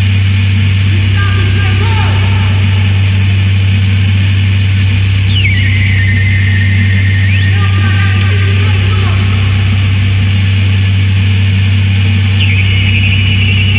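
Electronic tones glide and warble over the drone.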